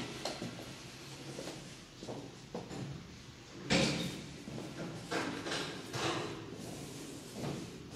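Footsteps tread on a hard floor indoors.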